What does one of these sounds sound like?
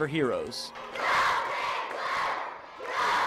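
A crowd of children cheers and shouts loudly.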